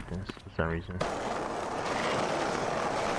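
Skateboard wheels roll on rough asphalt with a steady rumble.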